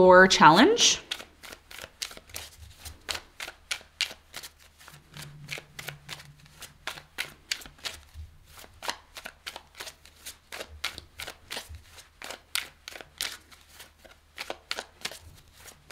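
Playing cards are shuffled by hand, with quick soft flicks and snaps close by.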